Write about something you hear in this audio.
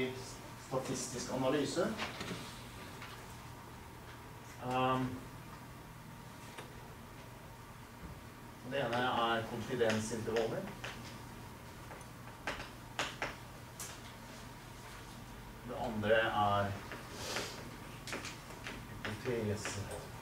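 A man speaks calmly, in a room with a slight echo.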